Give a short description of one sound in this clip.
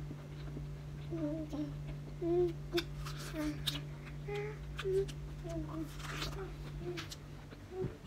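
A small child babbles softly.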